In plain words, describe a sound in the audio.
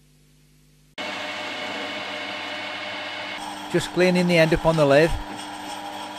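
A metal lathe motor runs with a steady hum.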